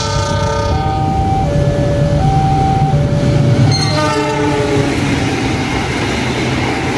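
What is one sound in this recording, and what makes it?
A train horn blares a series of long changing tones close by.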